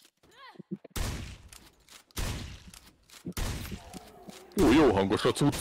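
A rifle fires single loud shots that ring out and echo.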